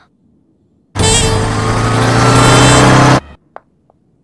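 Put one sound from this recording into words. Motorcycle engines roar in traffic.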